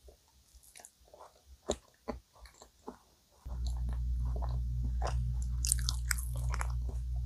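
A young woman chews soft food close to a microphone, with moist, sticky mouth sounds.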